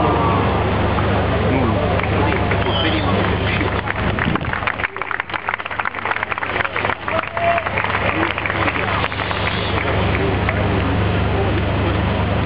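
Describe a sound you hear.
A crowd of spectators murmurs and chatters outdoors in a large stadium.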